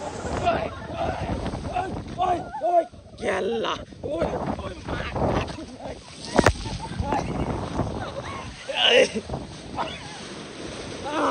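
Water rushes and splashes down a slide.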